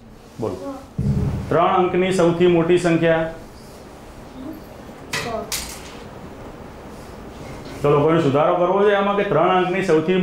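A group of children speak together in a chorus.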